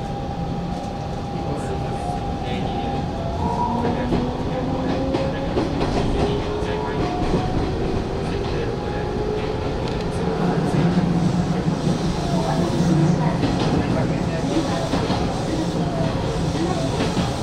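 A train's electric motor whines, its pitch gliding as it changes speed.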